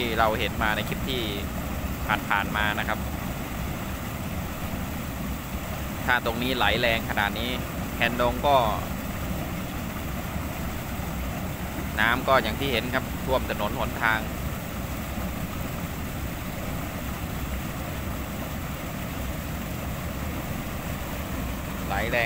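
Water pours steadily over a weir into a spillway with a rushing roar.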